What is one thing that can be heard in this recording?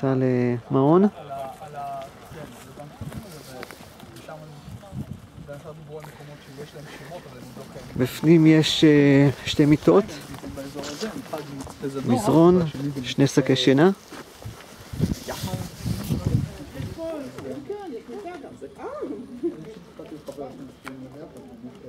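Several people talk quietly outdoors in the background.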